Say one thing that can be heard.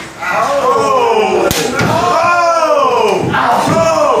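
A loud slap of a hand striking a bare chest rings out.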